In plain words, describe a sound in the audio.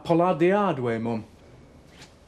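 A man speaks quietly and closely.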